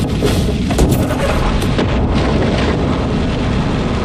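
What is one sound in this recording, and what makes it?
A truck engine rumbles at idle.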